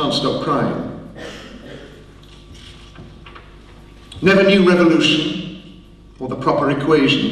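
A man reads aloud into a microphone with expression.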